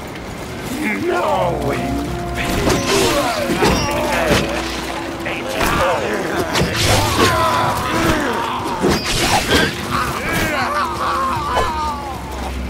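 Swords clash and strike.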